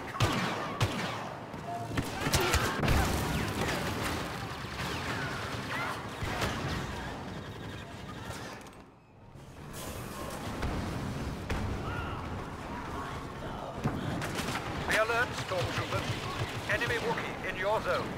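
Laser blasters fire in sharp, rapid bursts.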